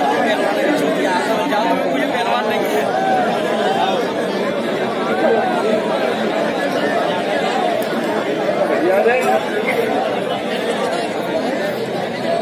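A large outdoor crowd chatters and shouts loudly throughout.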